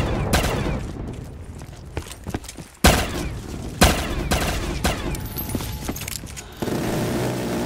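Pistol shots crack sharply.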